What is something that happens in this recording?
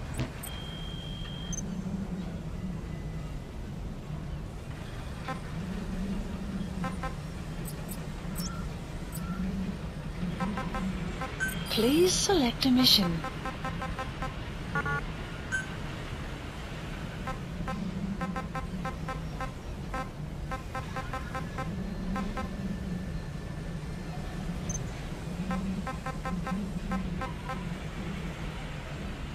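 Soft electronic menu blips tick repeatedly.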